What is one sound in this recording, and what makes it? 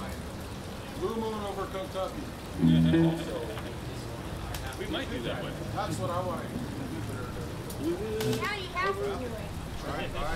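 A man talks casually into a microphone over loudspeakers.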